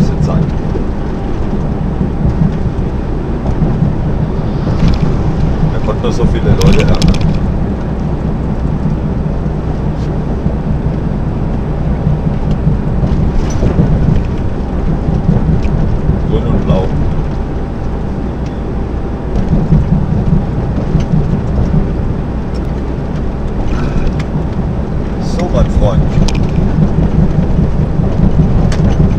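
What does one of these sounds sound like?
A diesel truck engine drones while cruising on a motorway, heard from inside the cab.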